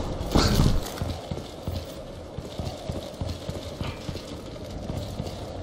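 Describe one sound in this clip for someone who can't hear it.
Heavy footsteps thud steadily on a hard floor.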